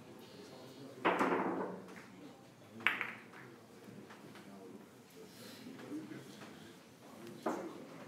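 Billiard balls clack sharply together, ringing briefly in an echoing hall.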